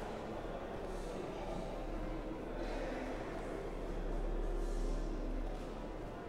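A man chants in a slow, steady voice, echoing through a large hall.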